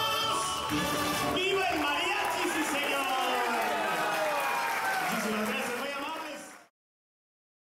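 A mariachi band plays trumpets, violins and guitars.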